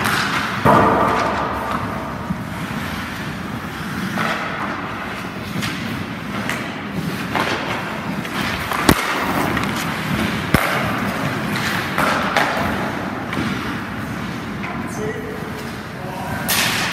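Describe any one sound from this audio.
Hockey skate blades carve and scrape across ice.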